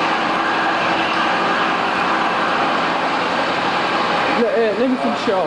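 A gas torch flame roars with a steady hiss.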